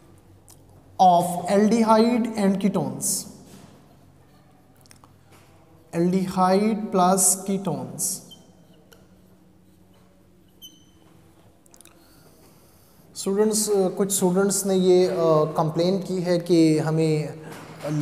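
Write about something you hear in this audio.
A man speaks calmly and clearly into a nearby microphone, in short bursts with pauses.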